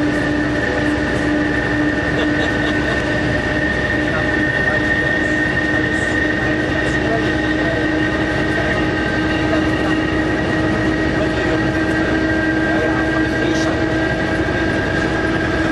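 A train engine hums steadily while running.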